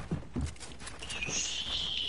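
A pickaxe strikes a wall with sharp knocks.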